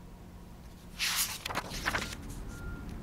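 Paper pages rustle and flip as they are turned.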